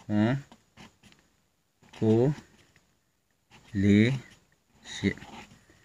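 A marker pen scratches softly on paper.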